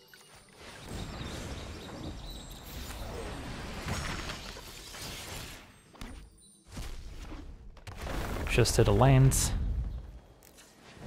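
A magical spell effect whooshes and shimmers.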